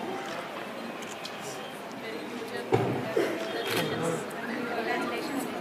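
People chatter and murmur close by.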